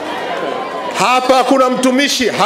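A man speaks forcefully into a microphone, amplified by a loudspeaker.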